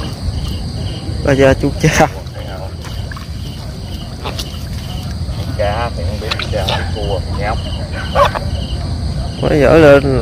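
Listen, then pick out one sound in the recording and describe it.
Water splashes as a man wades and reaches into a shallow pond.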